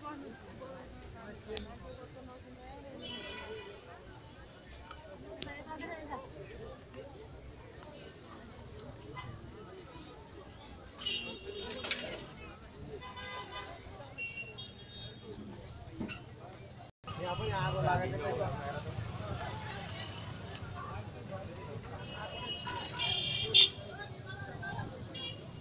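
A crowd of men and women murmurs and talks outdoors close by.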